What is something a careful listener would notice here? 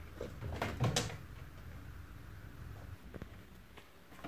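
A cat's paws thump on a wooden bed frame.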